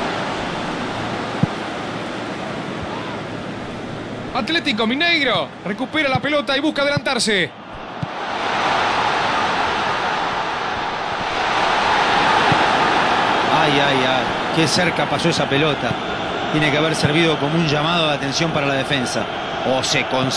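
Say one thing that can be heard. A large stadium crowd murmurs and cheers steadily, swelling louder for a while.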